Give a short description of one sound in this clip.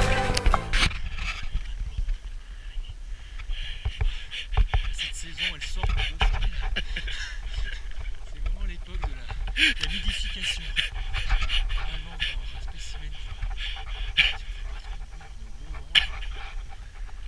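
A man talks calmly and closely to a microphone.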